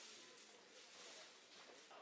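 A broom scrapes and sweeps on a paved street.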